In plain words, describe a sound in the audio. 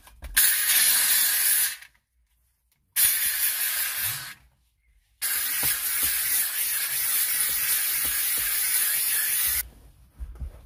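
A steam cleaner hisses loudly in bursts.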